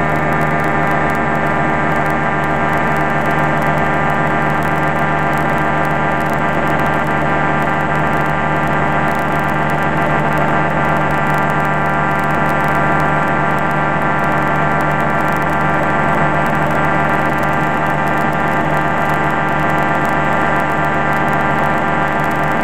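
A light aircraft's propeller engine drones steadily and loudly close by.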